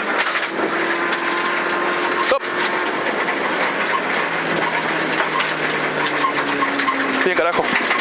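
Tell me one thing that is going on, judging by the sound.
A car engine roars loudly from inside the cabin.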